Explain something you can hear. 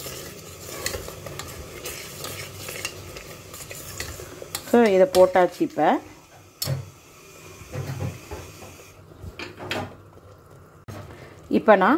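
A metal spoon scrapes and clinks against a metal pot while stirring a thick mixture.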